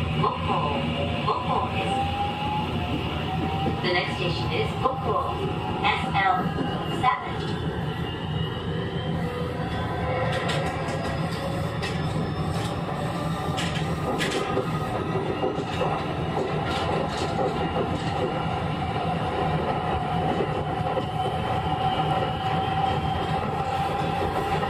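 A train rumbles slowly along the track.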